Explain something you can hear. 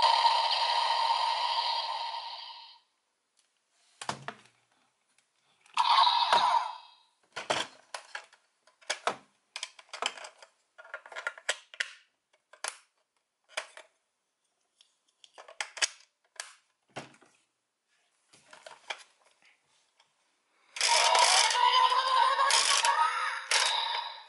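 A toy plays loud electronic sound effects and music through a small speaker.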